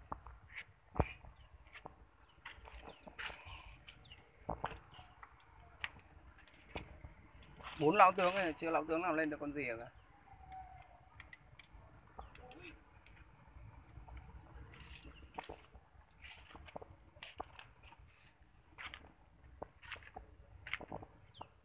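Footsteps crunch slowly on dry dirt and leaves.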